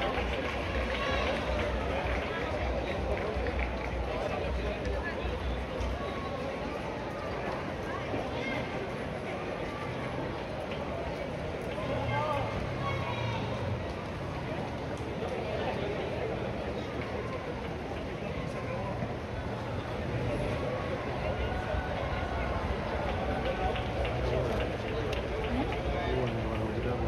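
Many runners' footsteps patter on the pavement.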